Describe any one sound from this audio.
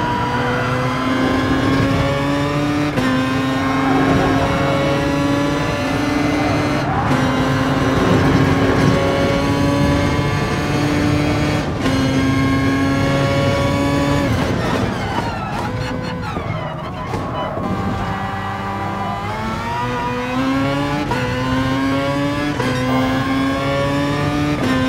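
A racing car engine roars loudly, rising in pitch through each gear and dropping with each shift.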